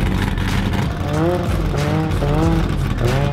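A car engine revs up and down repeatedly.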